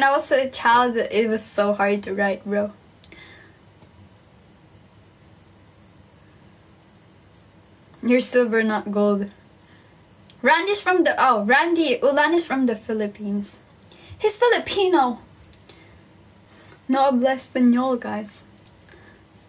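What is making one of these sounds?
A young woman talks calmly and close to the microphone, in bursts with pauses.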